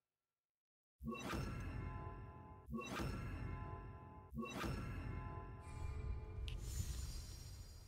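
Menu chimes ring out in short bursts.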